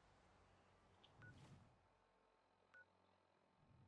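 A small electronic device beeps.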